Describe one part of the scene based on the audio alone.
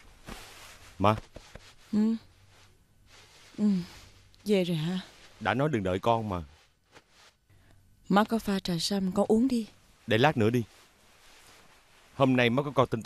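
A woman speaks quietly and wearily nearby.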